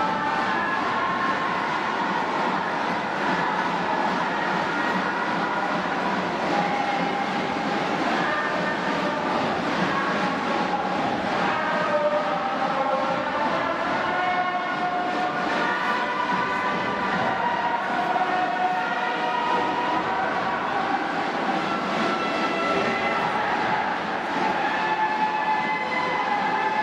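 A large crowd chants and cheers steadily in a stadium.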